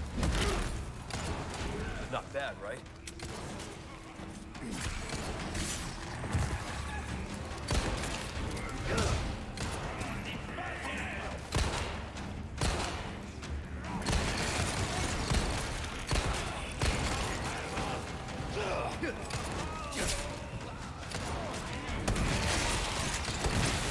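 Men growl and shout while attacking.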